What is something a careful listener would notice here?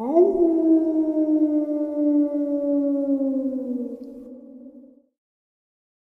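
A werewolf howls long and loud, slowly falling in pitch and fading.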